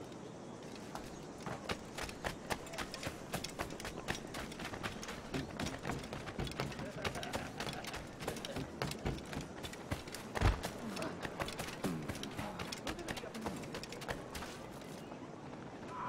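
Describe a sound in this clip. Footsteps run quickly over sand and wooden boards.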